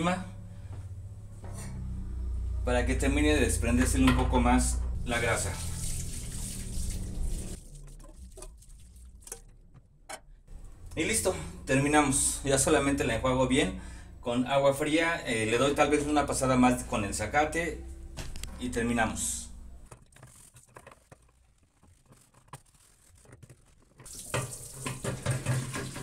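Water runs from a tap and splashes into a basin.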